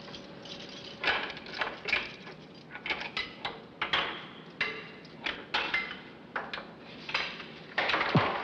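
Keys jingle and scrape in a metal lock.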